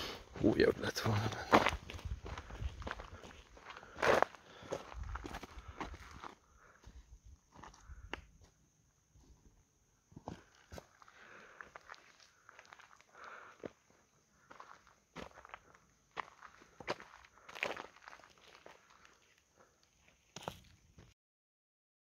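Footsteps crunch on loose gravel and stones.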